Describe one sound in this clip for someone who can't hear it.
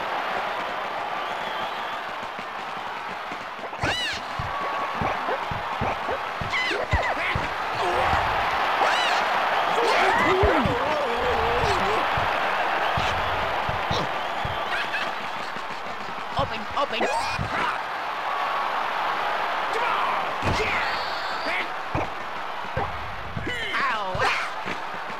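A crowd cheers steadily throughout.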